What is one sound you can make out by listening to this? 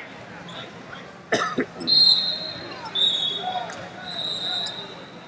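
Voices of a small crowd murmur in an echoing hall.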